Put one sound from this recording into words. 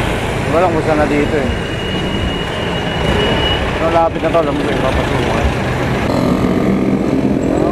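Motorbike engines hum in nearby traffic.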